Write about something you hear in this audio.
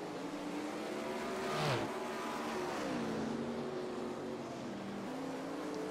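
Racing car engines roar steadily.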